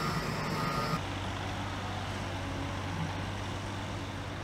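A dump truck's engine hums steadily.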